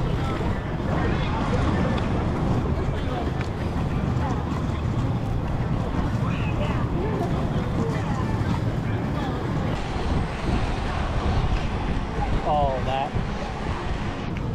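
Inline skate wheels roll and rumble on asphalt.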